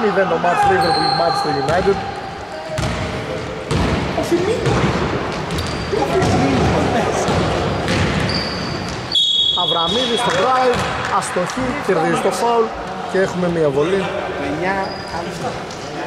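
Sneakers squeak on the court.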